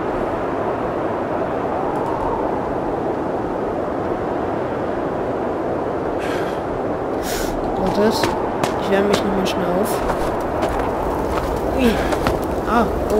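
Strong wind howls steadily outdoors.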